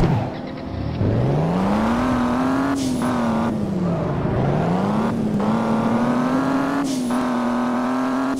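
A car engine revs and hums as a car speeds along a road.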